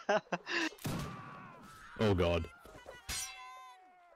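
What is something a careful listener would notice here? Swords clash with metallic clangs.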